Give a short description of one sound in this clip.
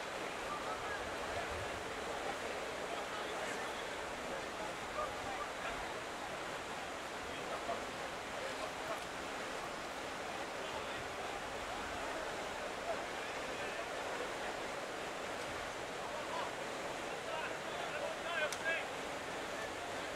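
Men shout to each other across an open field in the distance.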